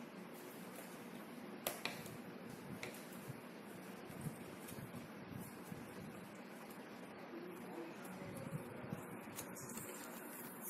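Cardboard puzzle pieces click and tap softly on a table.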